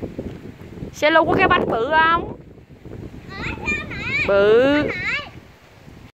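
A young child speaks in a high, excited voice nearby.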